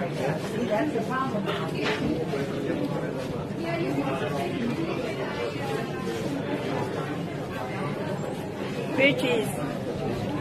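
A young woman talks cheerfully close to a microphone.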